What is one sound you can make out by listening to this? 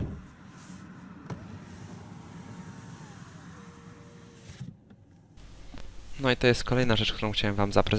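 A switch clicks on a car door.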